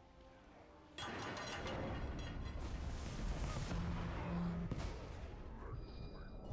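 Blades clash and thud in a fight.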